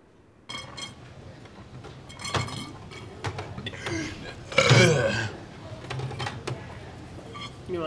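A young man gulps a drink.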